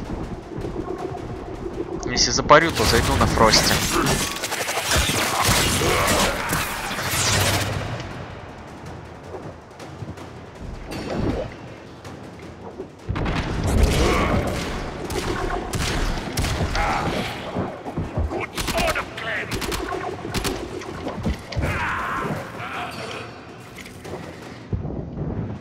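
Gunfire and blasts ring out in quick bursts.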